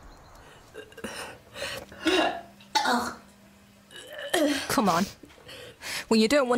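A young woman sobs and gasps close by.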